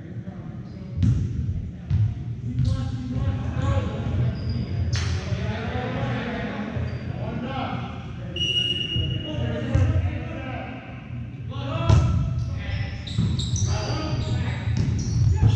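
Young men shout and call out to each other on the court.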